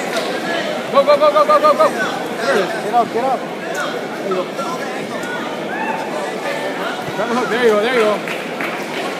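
Spectators cheer and yell encouragement loudly.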